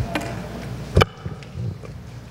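A microphone thumps as a woman adjusts it.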